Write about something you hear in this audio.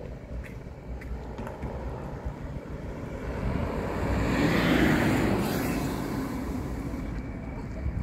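A car drives past on the street nearby, rising and then fading.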